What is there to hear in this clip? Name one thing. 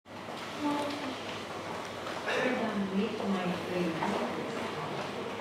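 A woman speaks calmly through a loudspeaker in a large, echoing room.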